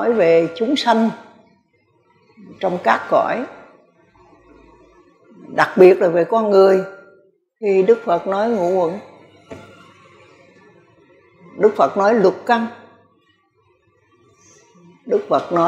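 An elderly woman speaks calmly into a microphone, in short phrases with pauses.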